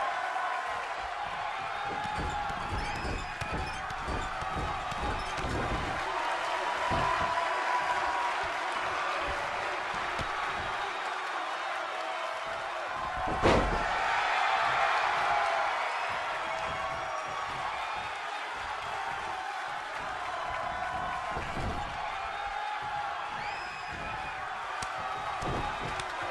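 A large crowd cheers and shouts steadily in an echoing arena.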